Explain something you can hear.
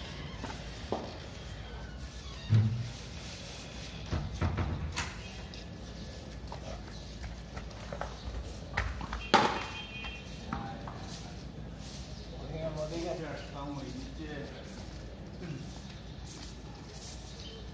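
A floor is scrubbed with a brush in the distance.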